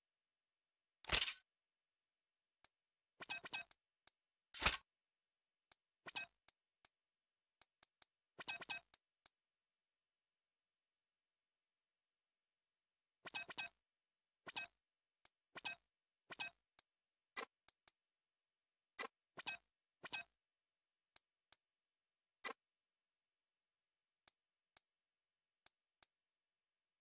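Short menu clicks and whooshes sound as items are browsed.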